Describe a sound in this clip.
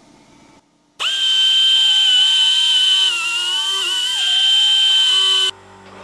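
A machine motor whines loudly with a steady high pitch.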